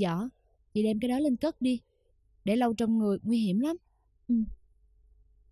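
A young woman speaks sharply and with emotion, close by.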